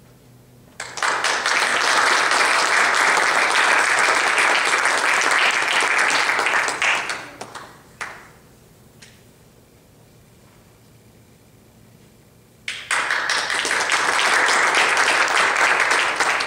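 An audience applauds loudly in an echoing hall.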